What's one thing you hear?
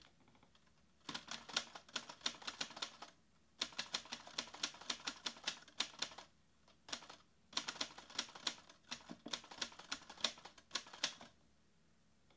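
Fingers type quickly on a laptop keyboard in bursts.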